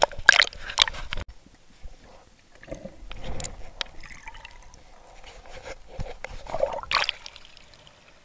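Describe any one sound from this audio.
Water splashes and churns around the microphone as it dips under the surface.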